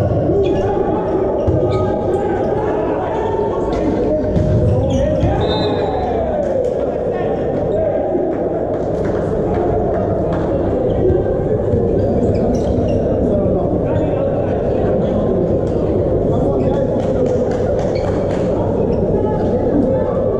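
A volleyball is struck by hand in a large echoing hall.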